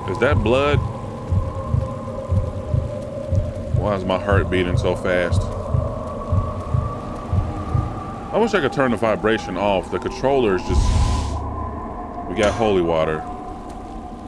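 A man speaks with animation into a nearby microphone, in short bursts.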